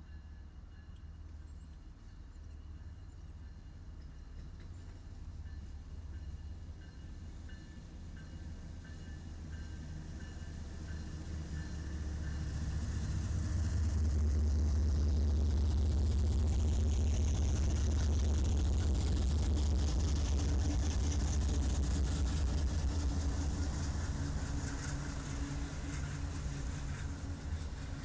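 Diesel locomotive engines rumble as a train approaches and grows louder, passing close by.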